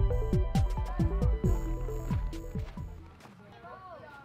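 Footsteps crunch on icy snow close by.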